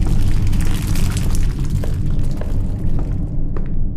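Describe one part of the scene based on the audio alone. Steam hisses loudly nearby.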